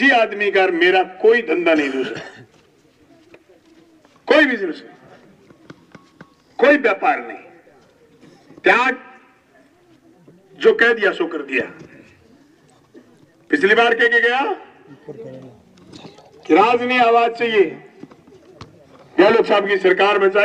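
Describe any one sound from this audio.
A man speaks forcefully through a microphone and loudspeaker outdoors, in loud bursts with pauses.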